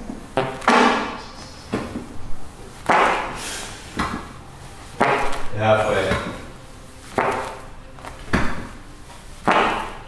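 A man exhales sharply and grunts with effort in repeated bursts, close by.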